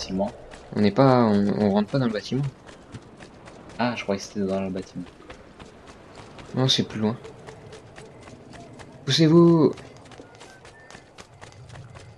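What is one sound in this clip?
Quick footsteps run on stone.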